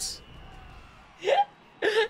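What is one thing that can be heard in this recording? A bright magical chime sparkles.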